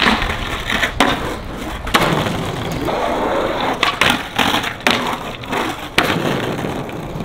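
A skateboard clacks down hard on concrete.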